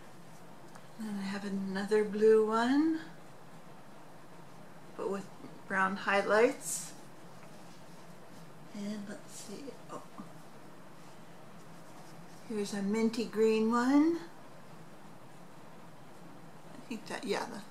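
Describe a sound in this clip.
An elderly woman talks calmly and close by, in short bursts.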